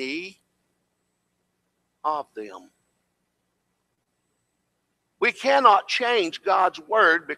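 An elderly man preaches with animation through a microphone, with long pauses.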